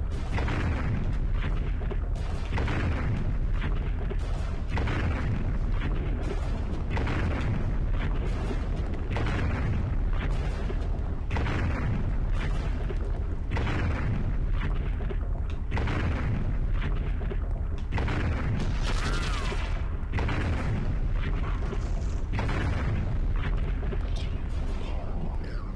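A giant creature's heavy footsteps thud and boom, echoing in a large hall.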